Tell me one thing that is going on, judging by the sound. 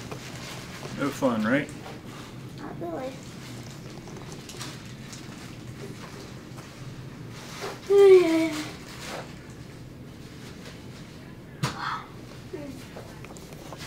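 A young girl speaks briefly close by.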